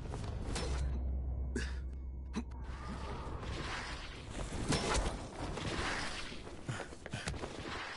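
Hands slap and grab onto stone ledges.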